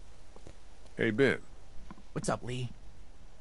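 A young man speaks casually.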